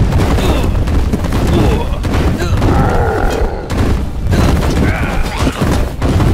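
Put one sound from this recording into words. Swords clash and blows thud in a rapid, chaotic battle.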